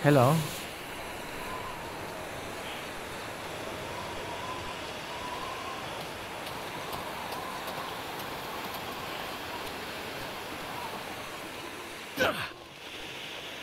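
A road flare hisses and sizzles steadily.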